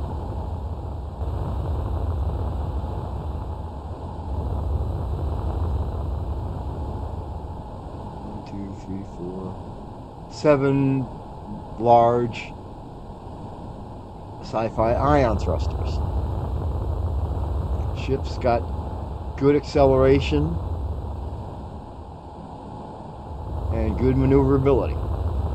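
A low engine rumbles steadily.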